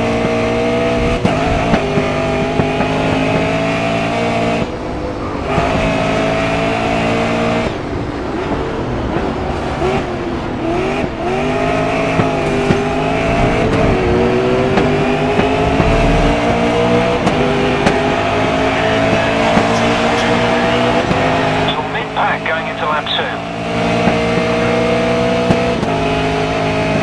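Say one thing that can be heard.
A race car engine roars loudly, its pitch rising as it speeds up and dropping when it slows.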